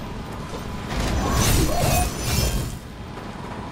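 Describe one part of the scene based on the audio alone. A blade swings through the air with a fiery whoosh.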